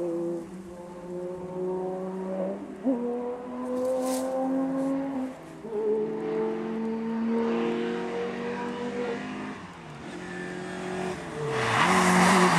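A rally car engine revs hard and shifts gears as the car races past.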